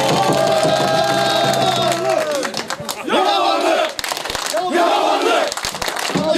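A crowd of men chants loudly outdoors.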